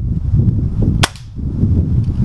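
An air rifle fires with a sharp crack.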